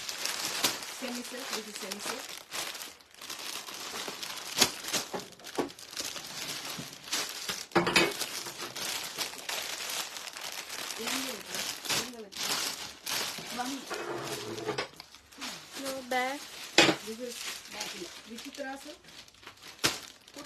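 A middle-aged woman talks calmly, close by.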